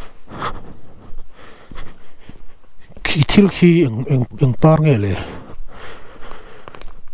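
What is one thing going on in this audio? Footsteps crunch on a dry dirt path.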